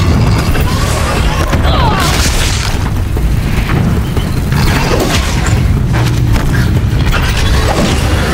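Explosions burst and crackle with fiery sparks.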